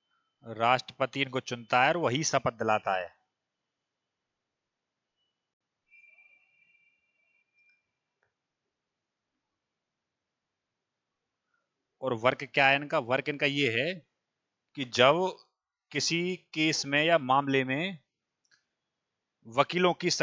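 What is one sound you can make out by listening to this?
A young man speaks with animation into a headset microphone, pausing now and then.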